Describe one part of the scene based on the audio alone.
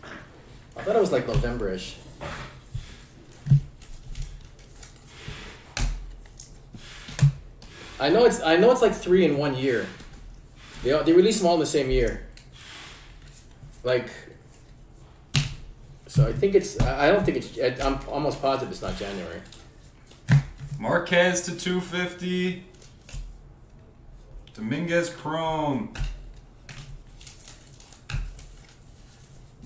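Trading cards slide and flick against each other in a stack.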